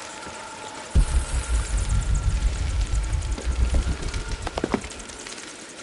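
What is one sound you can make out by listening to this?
Water rushes and roars loudly nearby.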